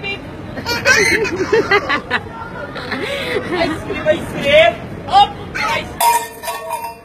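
A small child laughs and squeals excitedly nearby.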